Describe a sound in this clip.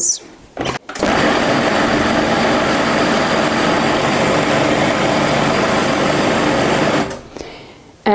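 A food processor whirs loudly as its blade spins.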